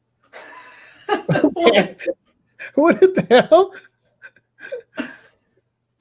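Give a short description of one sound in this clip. A second man laughs over an online call.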